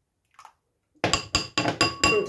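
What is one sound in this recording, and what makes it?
A whisk beats eggs briskly in a glass bowl.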